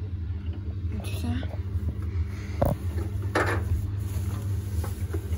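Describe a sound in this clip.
Damp towels rustle as a hand moves them inside a drum.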